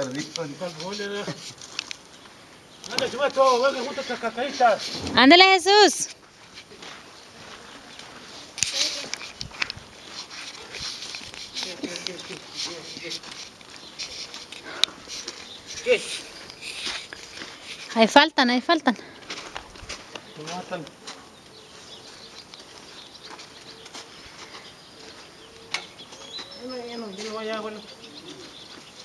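A man talks loudly nearby, outdoors.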